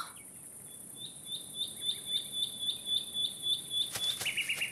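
Light cartoon footsteps patter in a quick, even rhythm.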